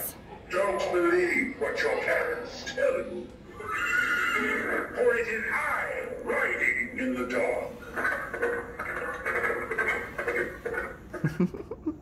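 A deep male voice speaks theatrically through a small loudspeaker.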